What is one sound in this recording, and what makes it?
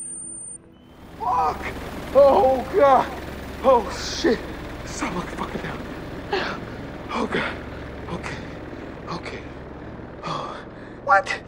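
A drone's rotors whir steadily.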